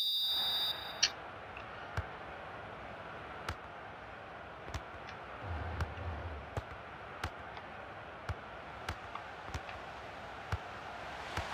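A football is kicked with short, dull thuds.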